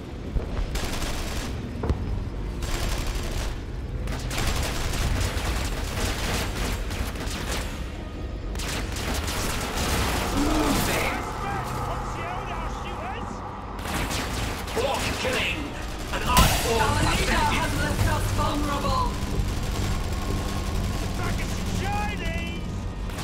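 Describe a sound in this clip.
Game battle sounds clash and crackle.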